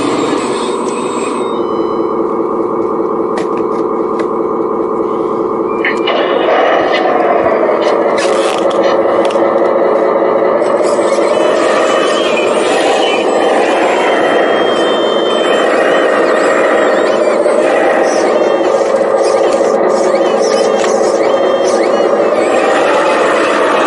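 Small electric motors whine steadily, rising and falling in pitch.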